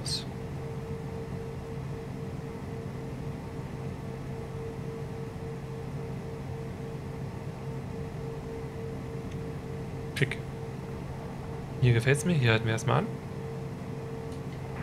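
A jet engine hums steadily.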